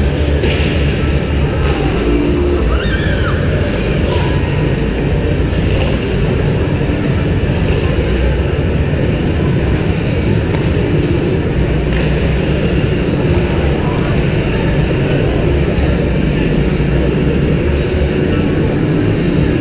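Ice skates scrape and carve across an ice rink.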